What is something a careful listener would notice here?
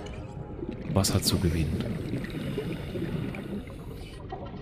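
Bubbles gurgle and burble underwater.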